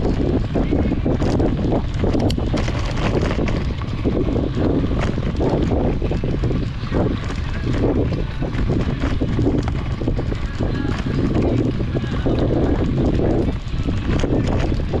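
Wind buffets loudly and steadily throughout.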